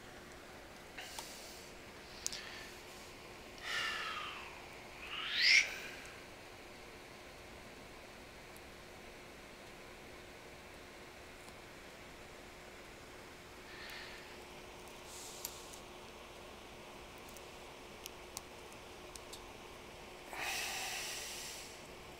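Hands knock and click against a lamp.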